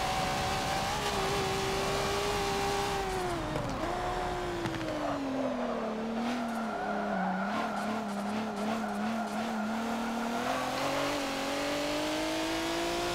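A racing car engine roars, dropping in pitch as the car brakes and rising again as it speeds up.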